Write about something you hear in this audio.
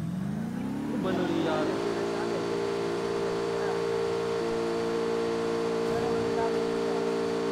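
A vehicle engine drones steadily.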